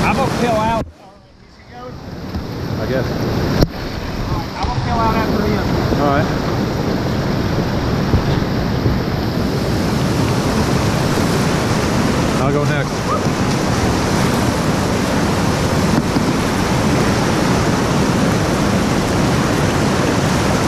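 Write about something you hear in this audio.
Whitewater rushes and roars loudly close by.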